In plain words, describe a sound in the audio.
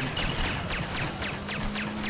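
A speedboat engine roars across water.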